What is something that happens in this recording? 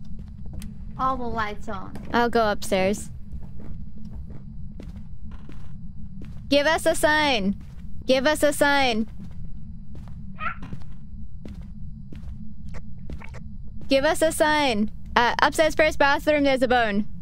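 A young woman talks close to a microphone, with animation.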